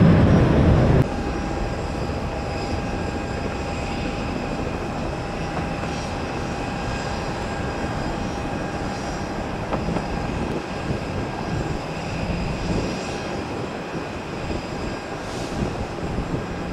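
A distant jet engine whines steadily as an airplane approaches.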